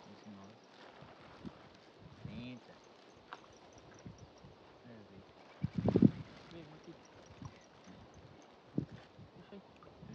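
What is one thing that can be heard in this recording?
A plastic sack rustles as it is handled.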